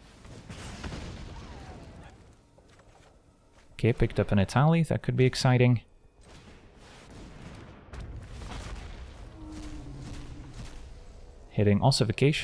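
Magical sound effects swoosh and shimmer as cards are played.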